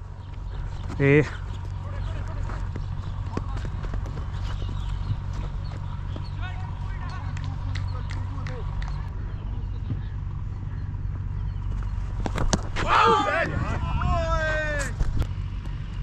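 A man calls out across an open field.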